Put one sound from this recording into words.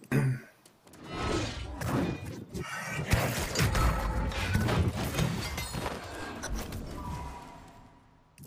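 Magic bursts loudly in a fight.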